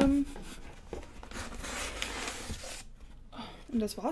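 Cardboard rustles and scrapes as a box is opened.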